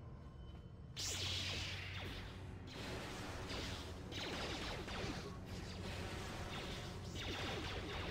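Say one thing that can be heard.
Electric lightning crackles and hisses loudly.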